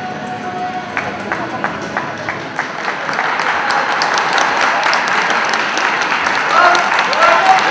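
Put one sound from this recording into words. An audience claps and cheers in a large hall.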